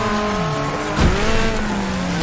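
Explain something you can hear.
A car lands hard with a sudden crunching thud.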